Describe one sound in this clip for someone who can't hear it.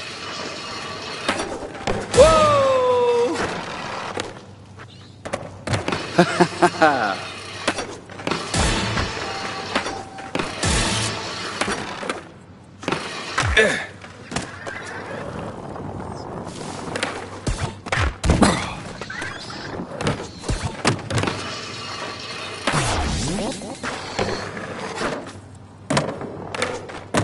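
A skateboard clatters as a skater lands tricks.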